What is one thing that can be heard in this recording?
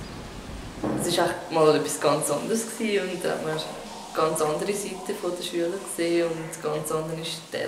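A young woman speaks calmly and close up, with a light echo.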